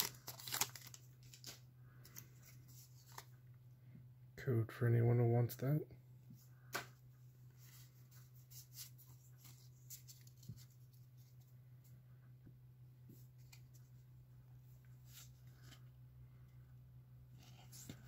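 Playing cards slide and flick against each other as hands sort them.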